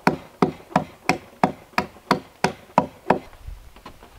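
A hatchet chops rapidly into a wooden log with sharp knocks.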